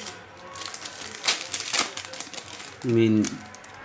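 Trading cards rustle and crinkle as they are handled.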